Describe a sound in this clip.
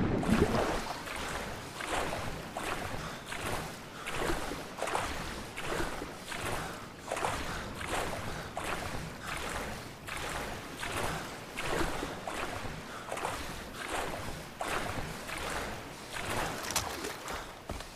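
Water splashes in steady, rhythmic strokes as a swimmer swims.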